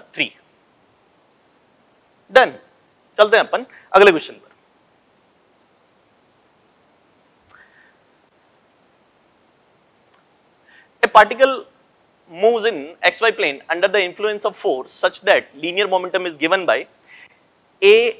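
A man lectures calmly and clearly into a close microphone, with pauses.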